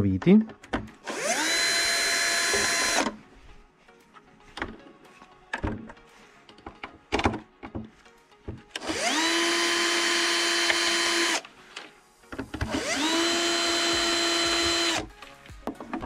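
A cordless drill whirs in short, steady bursts, driving screws.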